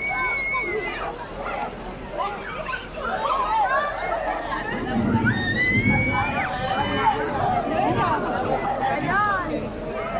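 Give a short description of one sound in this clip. A crowd of women and men talks and calls out excitedly outdoors.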